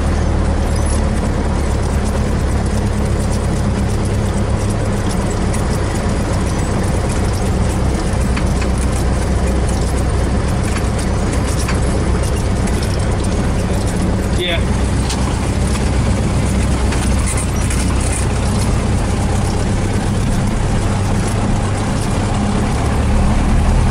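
A small propeller plane's engine drones steadily up close.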